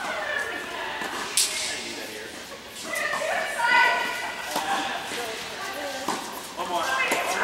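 Young women talk in a large echoing hall.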